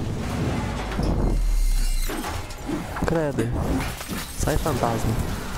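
Heavy metal crashes and clangs loudly.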